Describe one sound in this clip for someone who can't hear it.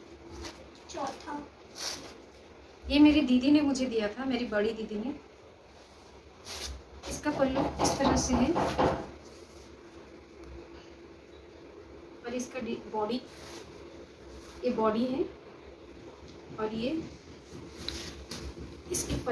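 Cloth rustles as it is unfolded and spread out.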